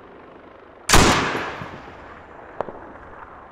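A loud explosion booms nearby and rumbles away.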